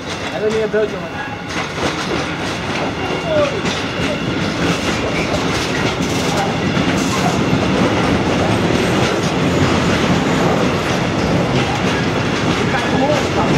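A long freight train rumbles past close by, its wheels clattering over the rail joints.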